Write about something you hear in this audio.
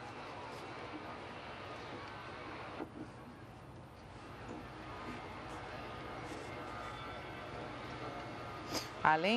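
A group of men and women chatter quietly nearby in an open, echoing space.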